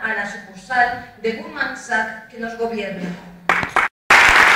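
A woman speaks through a loudspeaker in a large hall.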